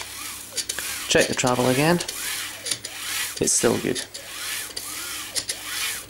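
A small plastic carriage slides and rattles along metal rods.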